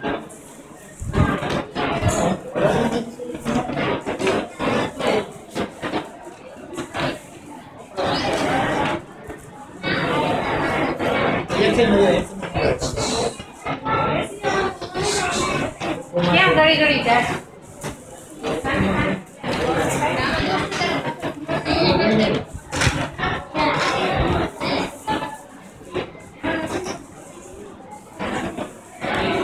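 Children chatter softly in a large echoing hall.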